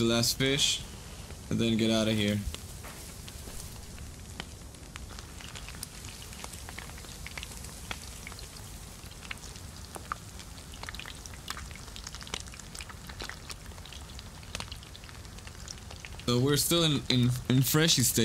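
A campfire crackles and pops softly.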